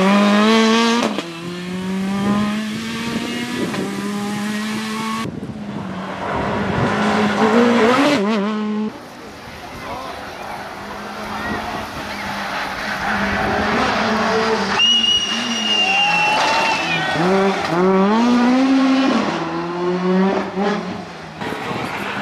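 Gravel sprays and crunches under a rally car's tyres.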